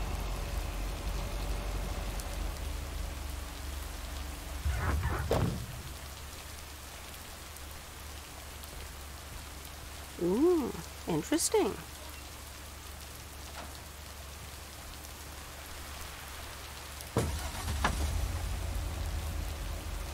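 A delivery truck's engine hums low as it drives.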